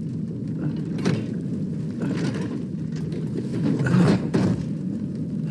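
Metal armour clanks and scrapes.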